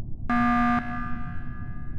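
A short electronic alarm blares.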